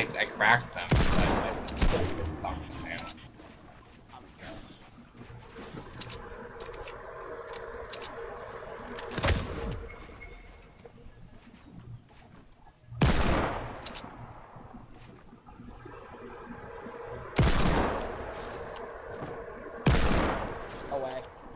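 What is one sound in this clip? Gunshots ring out loudly in a video game.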